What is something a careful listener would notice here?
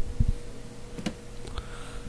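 Short electronic menu blips sound from a video game.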